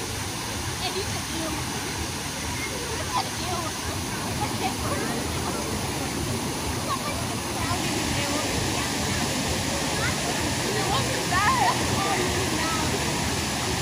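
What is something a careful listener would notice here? Water splashes steadily.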